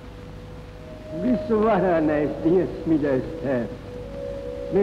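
An elderly man speaks slowly and solemnly, as if praying.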